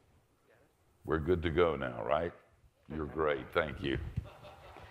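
An elderly man speaks calmly into a clip-on microphone.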